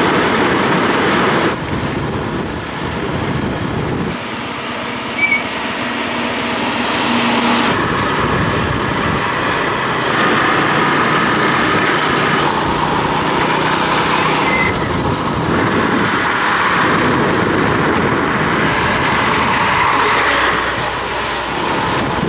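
Wind buffets loudly against a moving motorbike.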